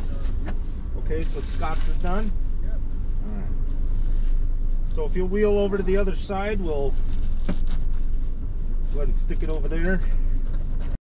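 A man talks outside an open car door, a little distance away.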